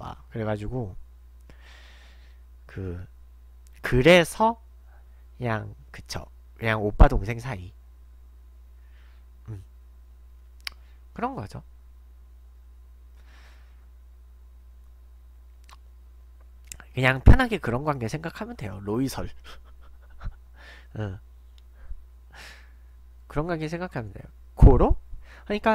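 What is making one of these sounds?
A young man talks casually into a close microphone, with pauses.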